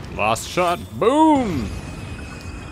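A monster lets out a wavering howl that rises and falls.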